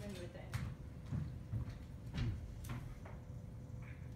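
Footsteps clack on a wooden stage floor.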